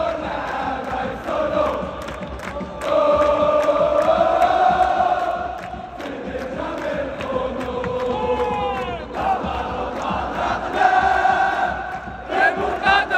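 A huge crowd sings and chants loudly together in a vast open stadium.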